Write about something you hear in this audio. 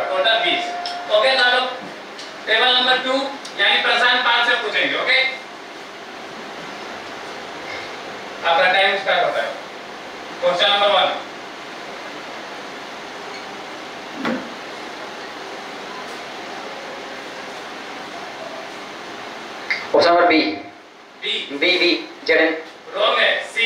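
A man explains, speaking through a clip-on microphone.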